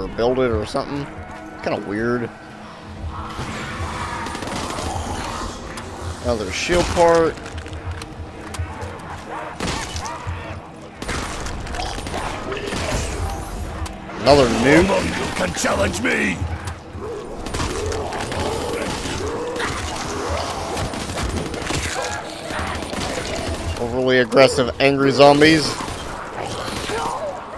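Zombies groan and snarl nearby.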